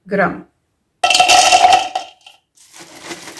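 A plastic bag crinkles and rustles.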